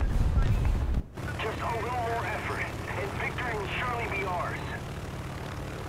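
An aircraft engine drones steadily.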